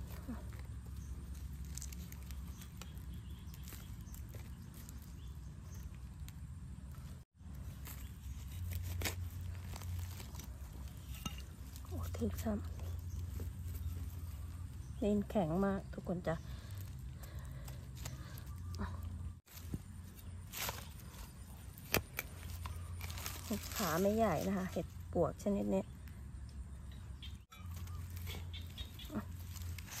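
A small trowel scrapes and digs into soil and dry leaves.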